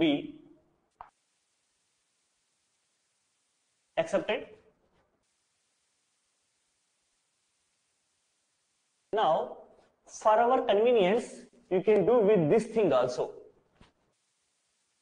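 A man speaks calmly, as if lecturing, close by.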